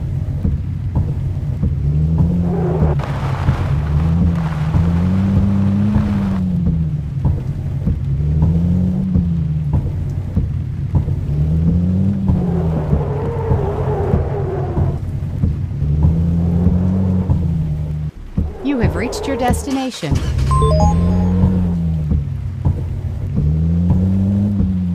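A car engine hums and revs up and down as it shifts gears.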